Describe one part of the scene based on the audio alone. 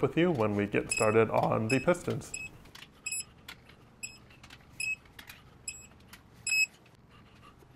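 A digital torque wrench beeps several times.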